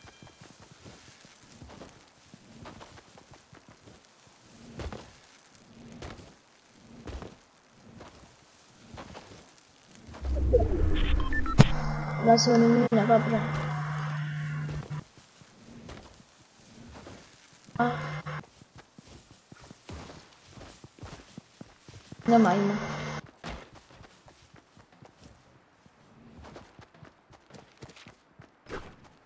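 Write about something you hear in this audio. Quick footsteps run steadily over soft ground.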